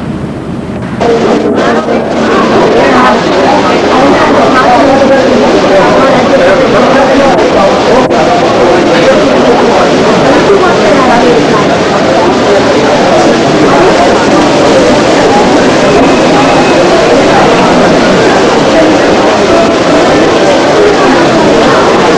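A crowd of men and women chatter in a busy, echoing hall.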